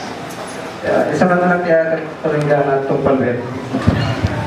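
A young man speaks into a microphone over a loudspeaker.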